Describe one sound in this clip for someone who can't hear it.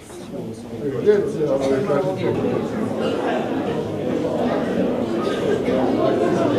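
A crowd of people chatters in a large room.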